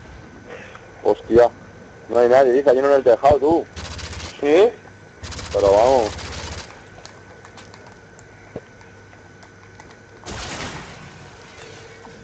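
Gunfire rattles in short, loud bursts.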